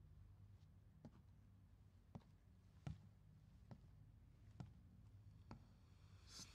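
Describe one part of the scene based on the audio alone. Footsteps thud slowly across a wooden floor.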